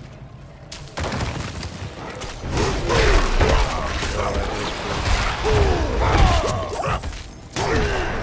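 Blows and spell effects crash loudly during a fight in a game.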